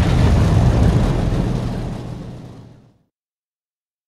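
A heavy roar rumbles loudly and then fades away.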